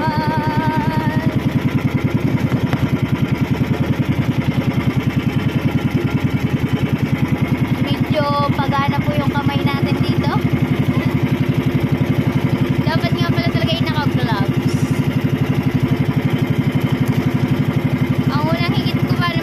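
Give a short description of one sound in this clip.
A boat engine chugs steadily and loudly close by.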